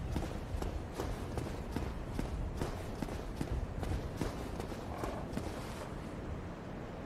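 Footsteps in armour tread on stone.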